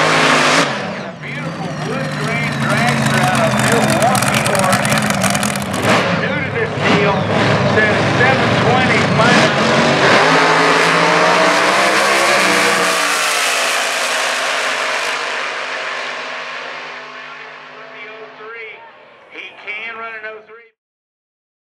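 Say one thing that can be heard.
Loud drag racing engines roar and then fade into the distance.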